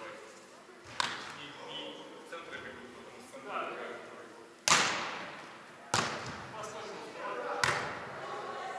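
A volleyball is struck with sharp thuds in a large echoing hall.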